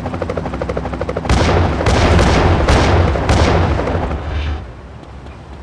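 A helicopter's rotor whirs overhead.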